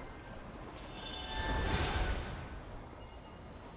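A fiery blast whooshes and roars.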